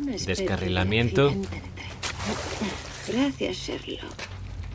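A second young woman answers calmly.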